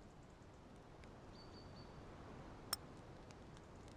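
A short interface click sounds.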